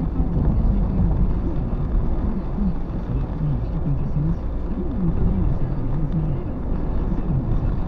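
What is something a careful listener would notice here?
A car engine rumbles low and steady.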